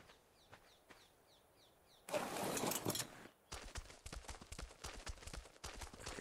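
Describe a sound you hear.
A large creature stomps heavily over the ground.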